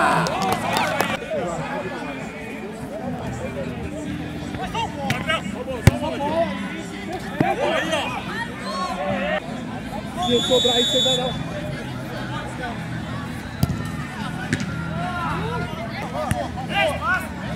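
A crowd of onlookers chatters and calls out.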